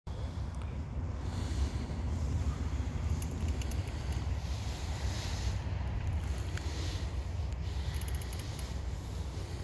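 Bicycle tyres roll steadily over smooth pavement.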